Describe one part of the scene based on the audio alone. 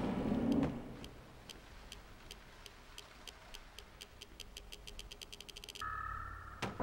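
A mechanism ticks rapidly, speeding up as a heavy load is lowered.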